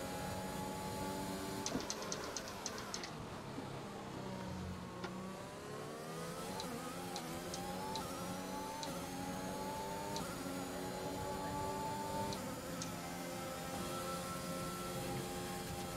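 A racing car engine screams, its pitch falling and rising with the gear changes.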